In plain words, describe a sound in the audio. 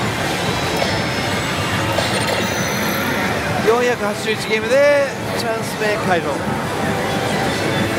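A slot machine plays loud electronic music and sound effects.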